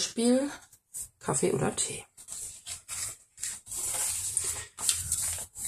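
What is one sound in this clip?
Paper rustles and crinkles as pages are turned and handled.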